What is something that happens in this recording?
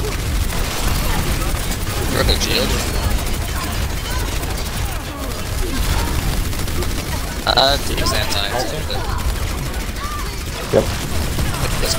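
Explosions boom in a game.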